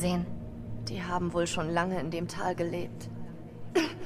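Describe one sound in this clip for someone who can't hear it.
A second young woman answers in a low voice.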